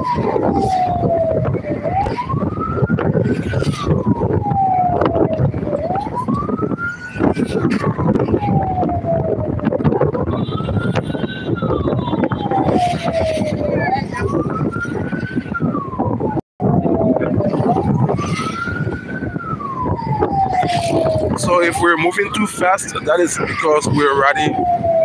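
Wind rushes past a moving open vehicle.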